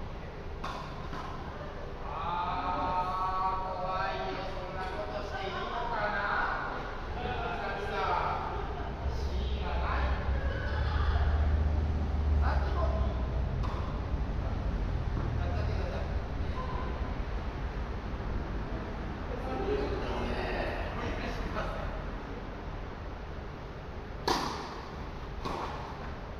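Tennis balls pop off rackets in a large echoing hall.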